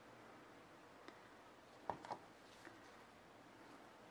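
A spoon taps against a glass.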